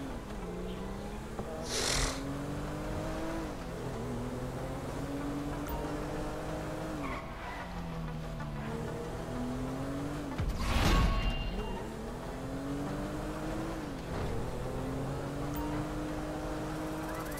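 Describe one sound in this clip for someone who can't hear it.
A car engine revs up and down through the gears.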